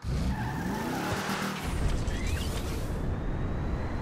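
A car engine revs and rises in pitch as the car lifts off.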